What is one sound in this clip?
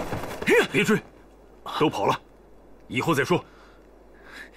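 A young man speaks urgently, close by.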